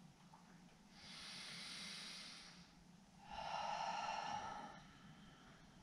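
A woman breathes in and out deeply.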